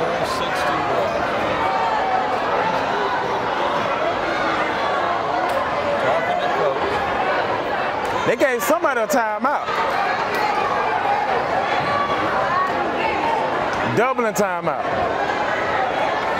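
A large crowd murmurs and chatters in an echoing gym.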